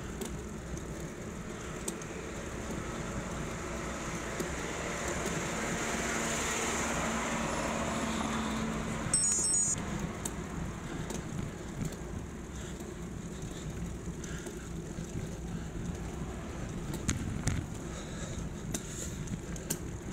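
Bicycle parts rattle and click over bumps.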